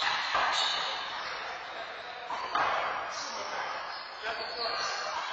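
A rubber ball smacks hard against walls in an echoing hall.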